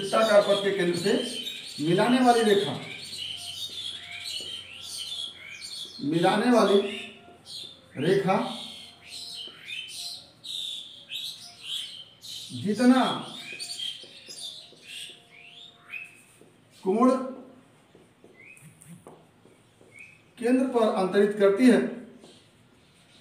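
A man speaks clearly and steadily, close by.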